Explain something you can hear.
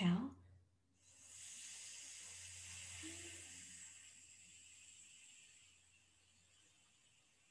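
A woman breathes out slowly through her nose.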